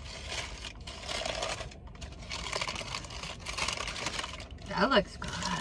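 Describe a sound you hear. A paper food wrapper crinkles and rustles close by.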